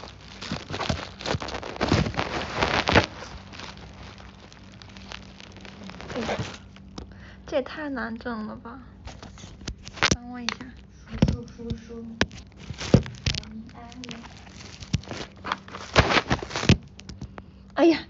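Clothing rustles and knocks against the phone as it moves.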